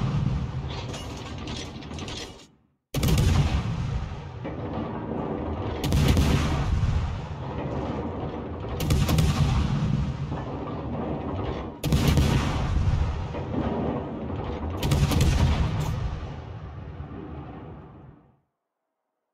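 Shells explode and rumble nearby.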